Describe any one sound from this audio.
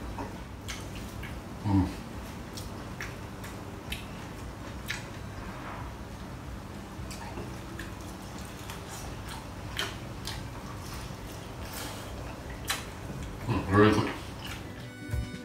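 A man chews food with soft, wet smacking sounds.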